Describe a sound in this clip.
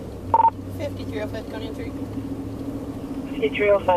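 A young woman speaks into a radio microphone.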